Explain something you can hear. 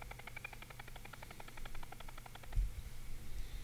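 Ducks quack rapidly and repeatedly.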